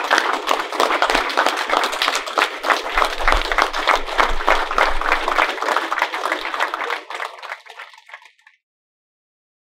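A large crowd applauds in a big room, and the clapping fades out.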